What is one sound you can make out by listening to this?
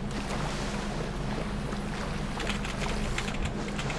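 Water splashes as a person wades through it.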